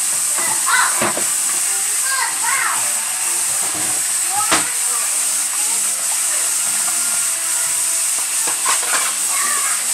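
Dishes clink and knock on a counter.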